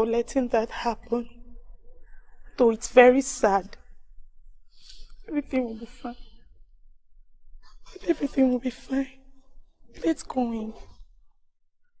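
A young woman speaks close by in a tearful voice.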